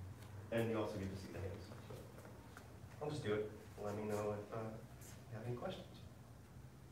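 A man speaks calmly, instructing, in a large echoing room.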